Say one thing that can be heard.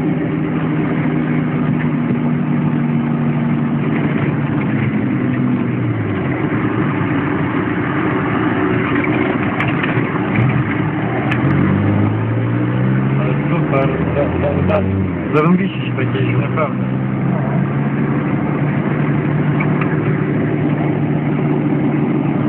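Tyres crunch and rumble over a bumpy dirt track.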